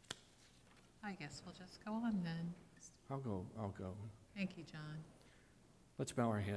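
A middle-aged woman speaks calmly into a close microphone.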